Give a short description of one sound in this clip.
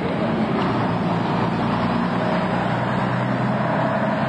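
A bus engine rumbles as it drives past close by.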